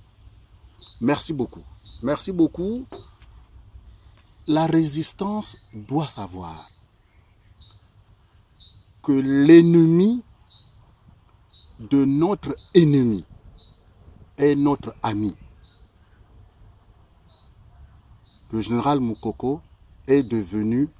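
A middle-aged man speaks calmly and earnestly, close to a microphone.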